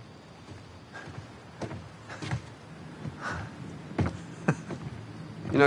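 Footsteps walk slowly across hard ground.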